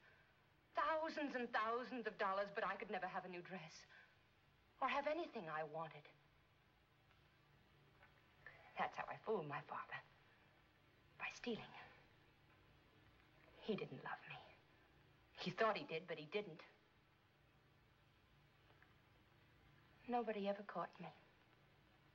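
A woman speaks quietly and warmly, close by, in short phrases with pauses.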